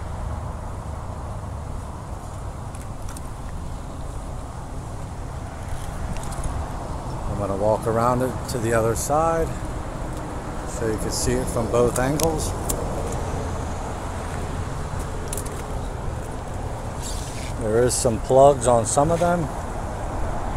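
Rubber cables rub and shift against each other in a hand.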